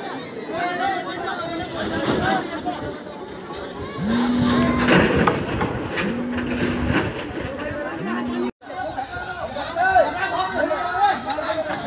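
A large outdoor crowd of men and women shouts and talks over one another.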